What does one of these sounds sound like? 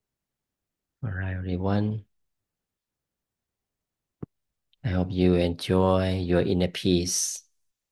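A man speaks calmly into a close microphone, heard over an online call.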